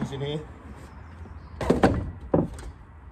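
A plastic box thuds down onto a metal roof.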